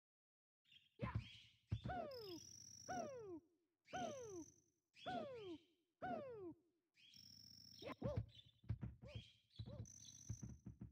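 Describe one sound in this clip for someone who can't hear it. Cartoonish game sound effects chirp and bounce.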